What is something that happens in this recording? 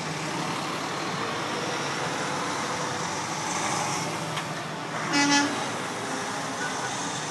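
Truck engines rumble steadily as the trucks drive past nearby.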